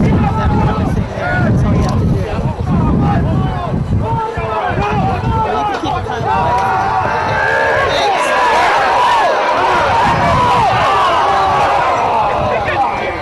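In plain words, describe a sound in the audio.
A crowd of young men shouts and cheers outdoors.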